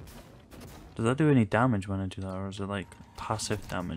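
A heavy weapon fires with a loud whirring burst.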